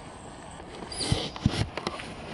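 Outdoors, wind buffets the microphone.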